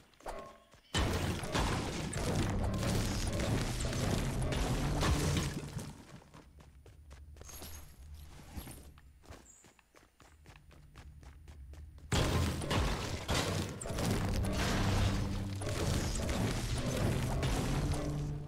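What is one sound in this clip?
A pickaxe strikes a brick wall again and again.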